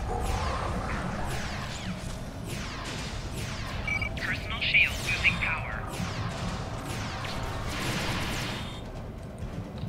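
Energy weapons fire with sharp, sweeping zaps.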